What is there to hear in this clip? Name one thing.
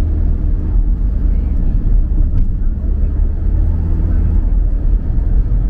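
A car engine hums steadily from inside the car as it drives along.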